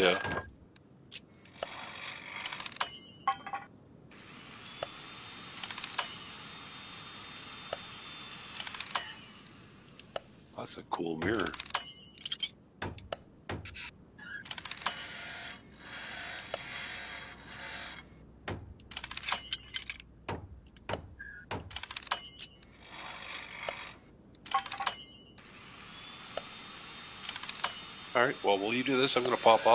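Game interface sounds click and chime as parts are repaired.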